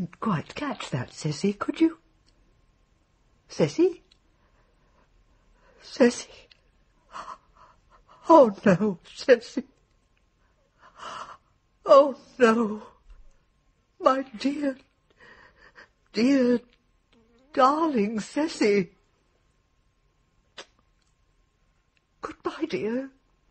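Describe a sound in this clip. An elderly woman speaks calmly, in short phrases with pauses.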